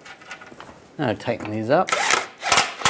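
A power ratchet whirs, spinning a bolt.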